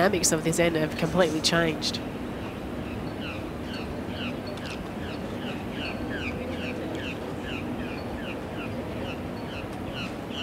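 A crowd murmurs quietly outdoors.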